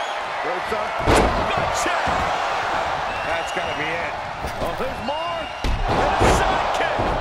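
A wrestler slams an opponent onto the mat with heavy thuds.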